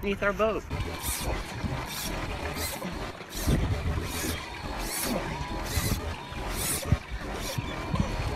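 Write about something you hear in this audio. A fishing reel clicks as a line is wound in.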